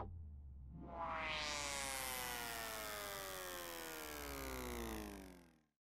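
Electronic dance music plays loudly.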